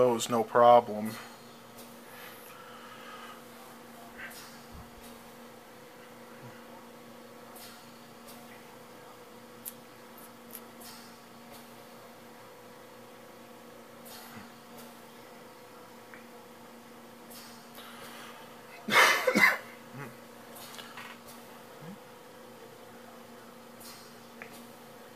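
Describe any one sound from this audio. A computer hums steadily.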